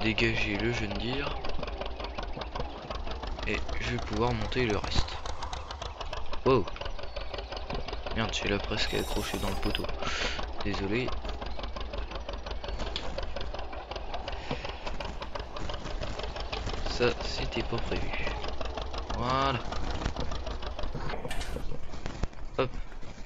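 A tractor engine idles with a low, steady rumble.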